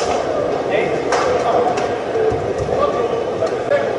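Rackets strike a shuttlecock back and forth with sharp pops.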